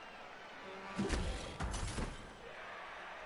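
Heavy thuds of players colliding boom out.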